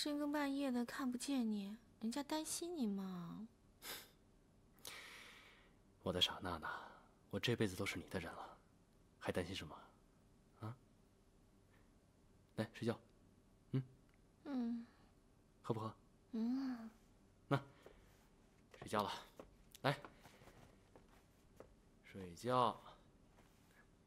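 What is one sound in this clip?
A young woman speaks softly and tenderly, close by.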